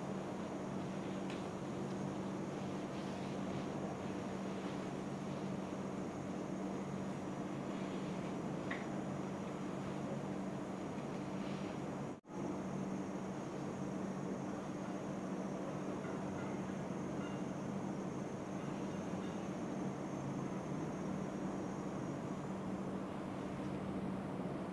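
Hands rub and knead oiled skin softly.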